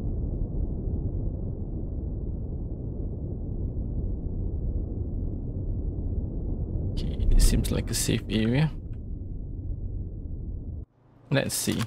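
A spaceship engine rumbles low and steadily.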